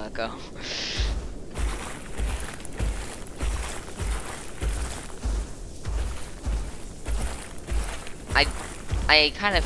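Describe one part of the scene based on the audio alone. Heavy footsteps thud in a steady rhythm.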